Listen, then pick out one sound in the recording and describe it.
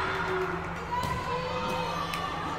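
A volleyball is struck with a sharp slap.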